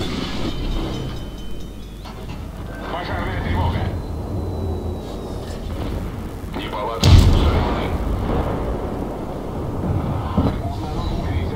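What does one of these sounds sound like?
Shells explode with heavy rumbling bangs.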